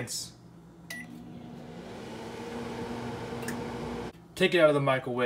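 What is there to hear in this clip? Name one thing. A microwave oven hums steadily as it runs.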